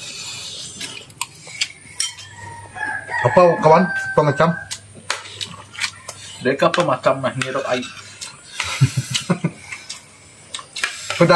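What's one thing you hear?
Spoons clink against plates.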